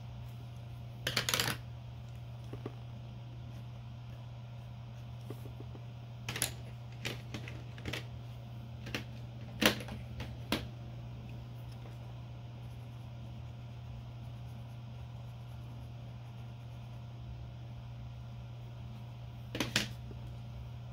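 Pencils click and tap against a hard surface now and then.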